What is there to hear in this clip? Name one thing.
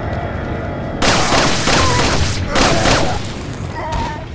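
An explosion roars and crackles.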